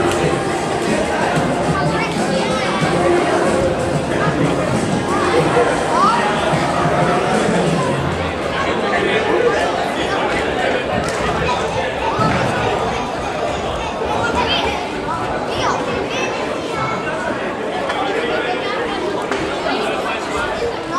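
A crowd of children and adults chatters throughout, echoing in a large hall.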